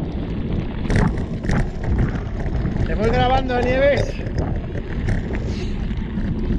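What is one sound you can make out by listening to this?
Bike tyres roll and crunch over a rough dirt trail.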